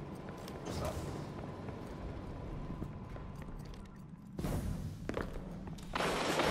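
Heavy footsteps thud quickly on a hard floor.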